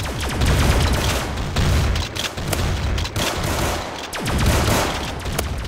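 Shotgun blasts go off in quick bursts.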